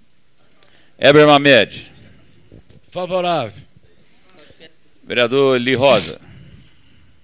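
An older man speaks forcefully into a microphone in short bursts.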